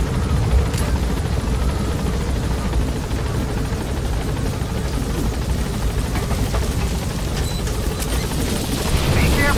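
A helicopter rotor thumps and roars steadily close by.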